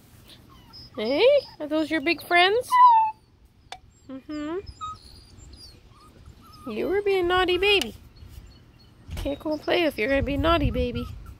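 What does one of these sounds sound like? A puppy cries out in high, loud yelps close by.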